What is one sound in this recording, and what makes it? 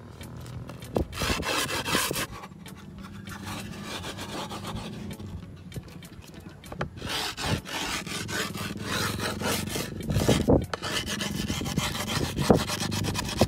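A hand knocks on a skateboard deck.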